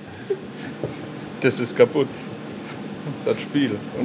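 A younger man laughs.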